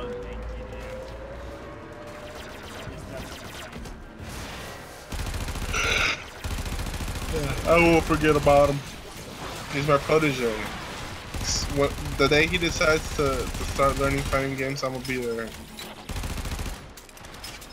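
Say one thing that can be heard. Weapons fire and blast in a video game.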